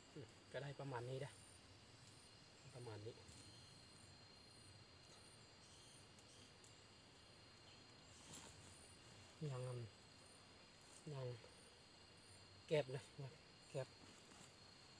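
A young man speaks calmly nearby, in short phrases.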